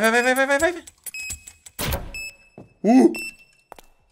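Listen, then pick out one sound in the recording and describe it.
A door latch clicks open.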